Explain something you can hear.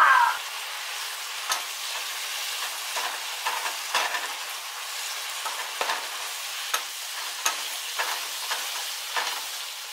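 A wooden spoon scrapes and taps against a frying pan.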